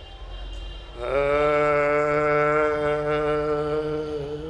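A middle-aged man sings a long, drawn-out note through a microphone.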